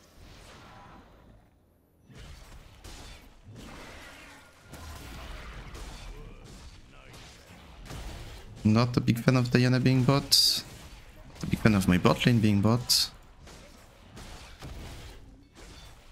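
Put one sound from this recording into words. Video game sword strikes and spell effects clash.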